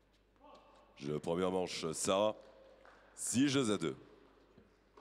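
A man announces over a loudspeaker in a large echoing hall.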